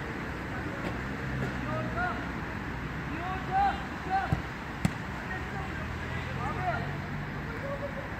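Men shout to each other across an outdoor pitch, some distance away.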